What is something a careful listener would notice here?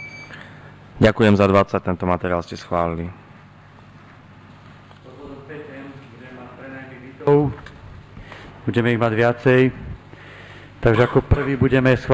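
A man speaks into a microphone, reading out in a room with a slight echo.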